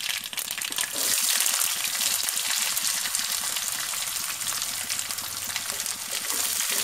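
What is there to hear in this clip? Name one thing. Chopped onions hiss loudly as they drop into hot oil.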